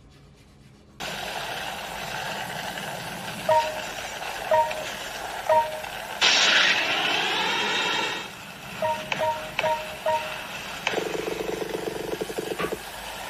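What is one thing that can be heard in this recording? Upbeat game music with chiming effects plays from a tablet speaker.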